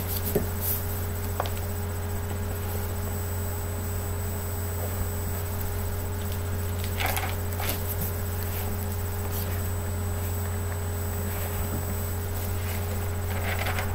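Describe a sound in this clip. Thin paper pages rustle and flap as a large book is handled close by.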